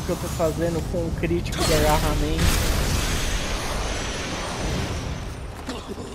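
A sword slashes and strikes an enemy.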